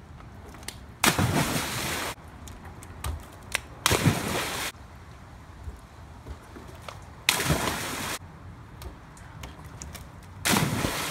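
A person splashes loudly into a pool of water.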